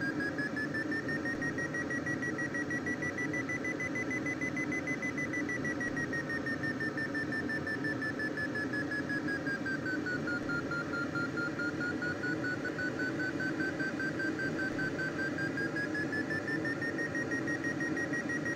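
A variometer tone hums steadily, slowly rising and falling in pitch.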